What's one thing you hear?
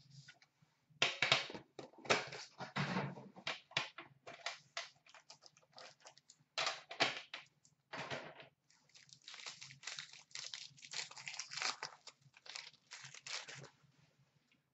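Plastic packaging crinkles and rustles as hands handle a box.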